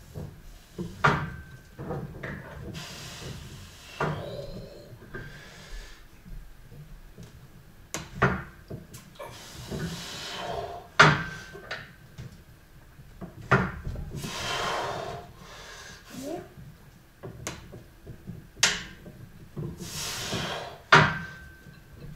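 Heavy metal weights clank with each lift.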